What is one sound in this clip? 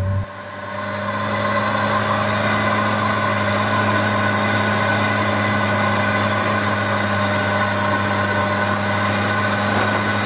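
An old engine rumbles and drones steadily as a vehicle drives along.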